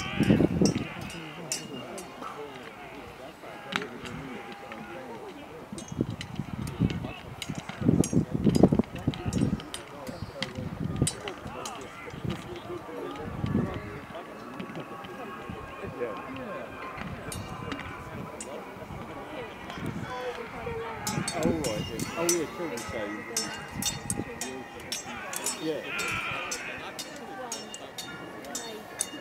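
Wooden weapons clack and knock together in a battle outdoors.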